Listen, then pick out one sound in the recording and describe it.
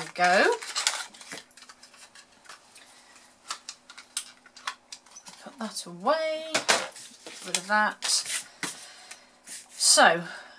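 Card stock rustles and taps as hands handle it.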